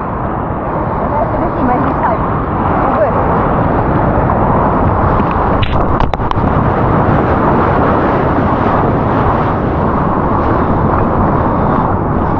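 A wave breaks and rumbles nearby.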